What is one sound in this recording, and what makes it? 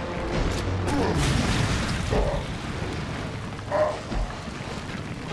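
A monster growls and snarls nearby.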